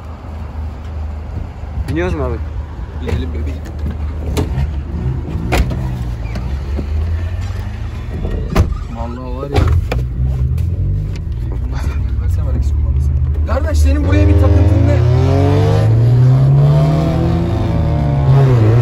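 A car engine rumbles steadily.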